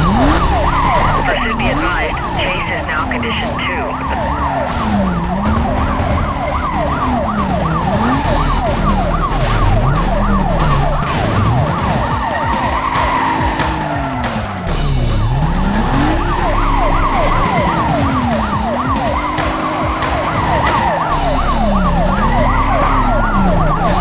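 Police sirens wail throughout.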